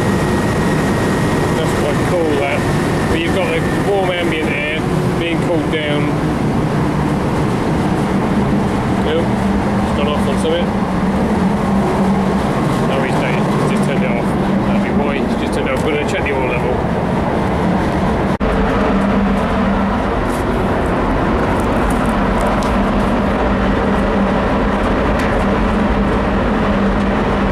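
A machine compressor hums steadily close by.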